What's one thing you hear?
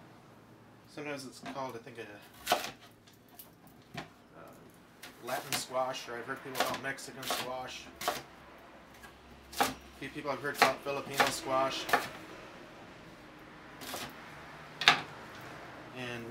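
A knife chops through vegetables on a wooden cutting board.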